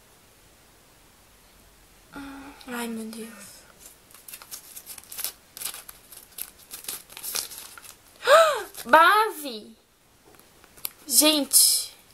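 Paper rustles and crinkles in a young woman's hands.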